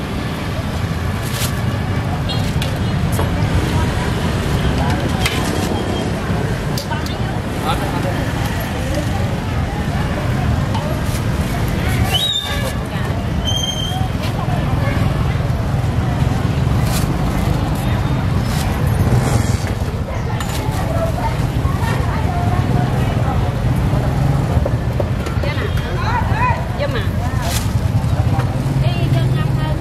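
A plastic bag rustles as soup is ladled into it.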